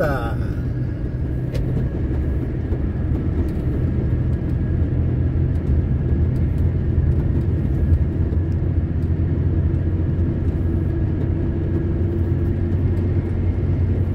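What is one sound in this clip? Tyres roll on asphalt with a steady rumble.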